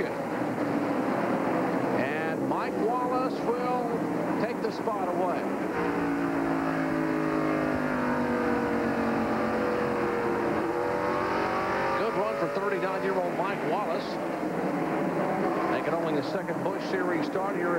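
Race car engines roar as cars speed around a track.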